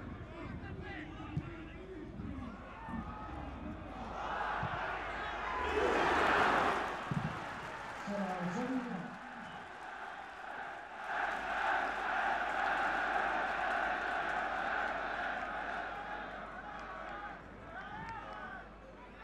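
A large stadium crowd roars and cheers, swelling loudly at times.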